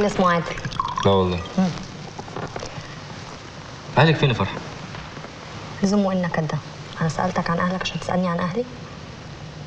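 A young man speaks calmly in reply.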